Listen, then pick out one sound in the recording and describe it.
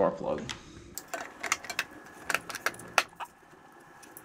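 Small switches and levers on an engine click and clack.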